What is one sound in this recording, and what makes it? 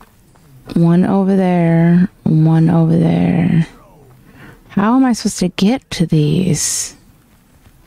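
A young woman speaks with animation, close to a microphone, her voice rising and falling in drawn-out tones.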